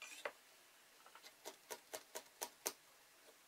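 A pencil scratches in short strokes on wood.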